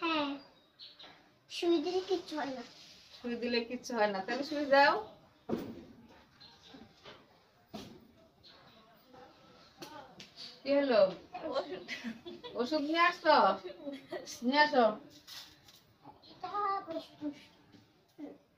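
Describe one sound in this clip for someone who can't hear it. Women talk with animation close by.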